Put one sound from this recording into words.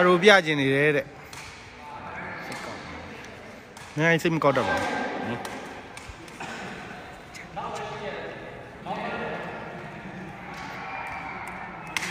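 A sepak takraw ball thuds as players kick it in a large echoing hall.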